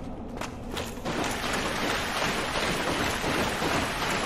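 Water splashes underfoot.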